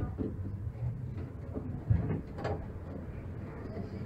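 A tram rumbles along its tracks.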